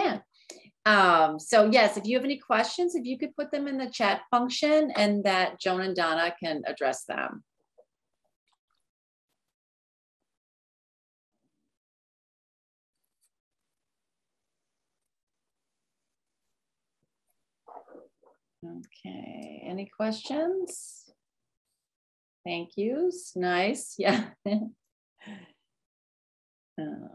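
A woman speaks calmly through an online call microphone, pausing at times.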